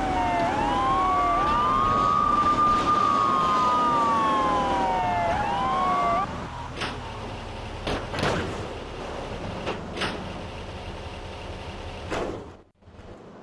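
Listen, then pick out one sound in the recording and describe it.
A car engine hums as a car drives along.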